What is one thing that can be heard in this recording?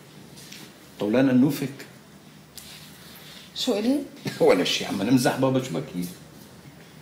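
A middle-aged man speaks in a low, earnest voice close by.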